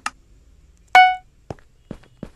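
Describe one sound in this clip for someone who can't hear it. A game chime sounds to start a round.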